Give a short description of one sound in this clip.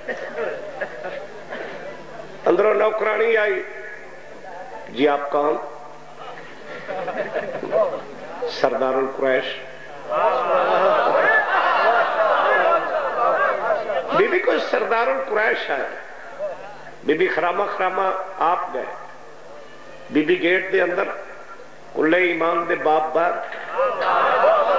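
A middle-aged man speaks with passion into a microphone, in loud bursts with pauses.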